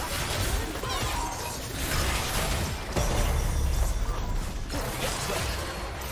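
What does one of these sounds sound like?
Video game spell effects whoosh, crackle and boom in a busy battle.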